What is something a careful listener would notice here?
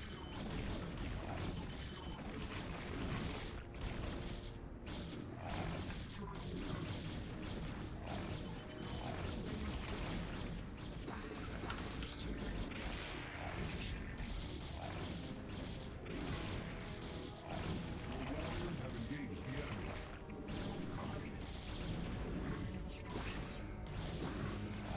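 Game units fire and explode in a battle.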